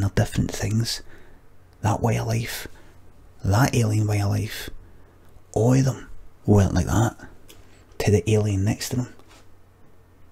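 A middle-aged man speaks with animation into a close microphone, in bursts with pauses.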